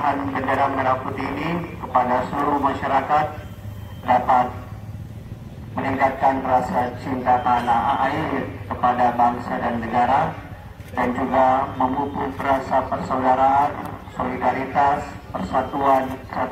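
A man speaks loudly and with animation into a microphone over a loudspeaker, outdoors.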